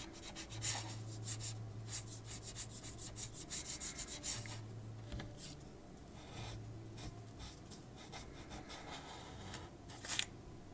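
A marker scratches and squeaks on paper in quick strokes.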